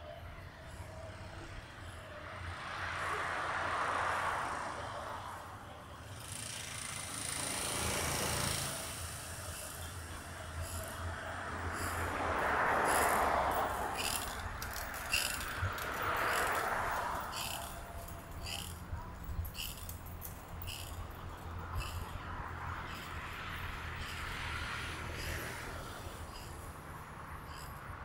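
Cars pass by on a nearby road, swelling and fading.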